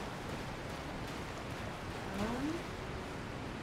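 Water splashes steadily as someone wades through it.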